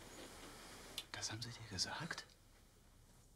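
Another man answers in a low, calm voice.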